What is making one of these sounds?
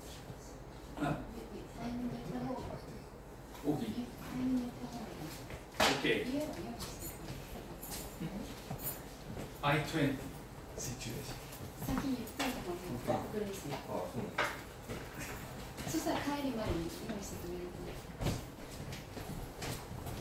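An older man speaks calmly to a small group.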